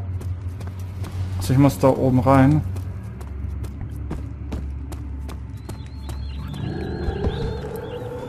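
Footsteps tap on stone steps and floor.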